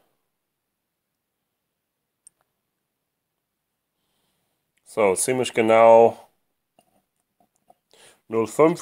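A glass pipette clinks against a whisky glass.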